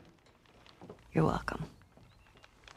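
A teenage girl speaks tensely, close by.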